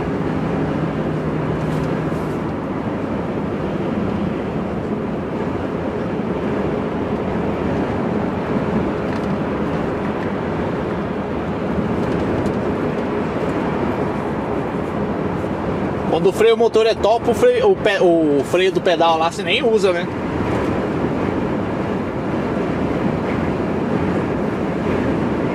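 A lorry engine hums steadily with road noise from inside the cab.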